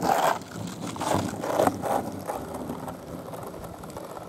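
Skateboard wheels roll and rumble over rough asphalt.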